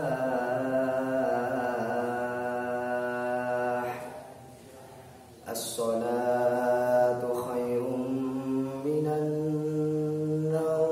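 A boy chants in long, held notes, echoing in a reverberant hall.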